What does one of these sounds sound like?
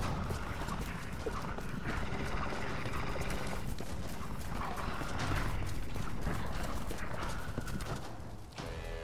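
A woman runs with quick footsteps over stone and grass.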